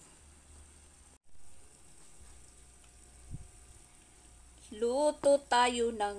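Water bubbles at a boil in a pot.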